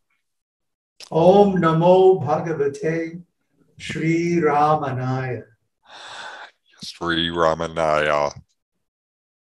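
A second elderly man speaks slowly over an online call.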